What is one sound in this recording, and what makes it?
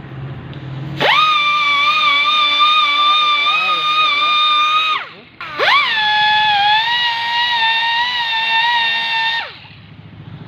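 A pneumatic rotary grinder whines as it buffs a rubber inner tube.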